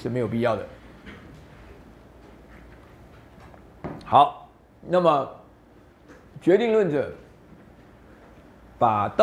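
A middle-aged man lectures calmly through a microphone, in short phrases with pauses.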